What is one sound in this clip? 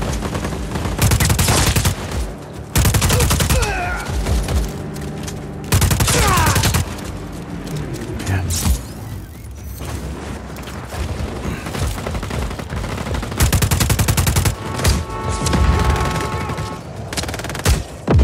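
An assault rifle fires in rapid bursts.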